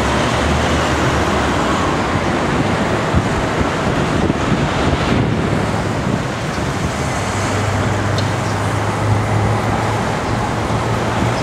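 City traffic rumbles steadily along a busy street.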